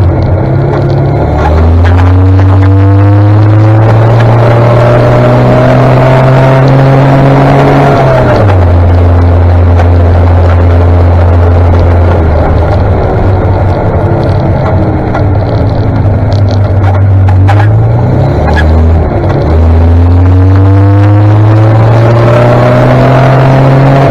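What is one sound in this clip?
A motorcycle engine revs up and drops as it shifts through gears.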